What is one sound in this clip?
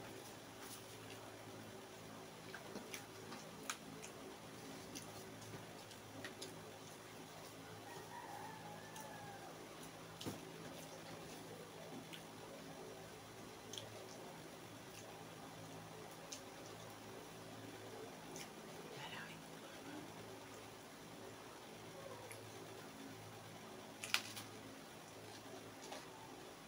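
Lettuce leaves crinkle and crunch as they are handled.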